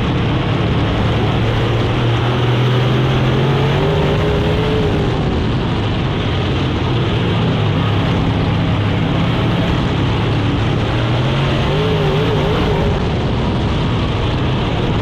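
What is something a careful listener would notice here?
A race car engine roars loudly up close, its pitch rising and falling.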